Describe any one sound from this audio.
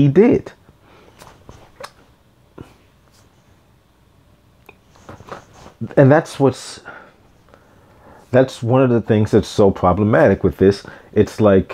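A man speaks calmly and close into a microphone, with pauses.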